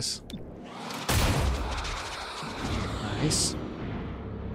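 A smoke grenade hisses loudly, then fades.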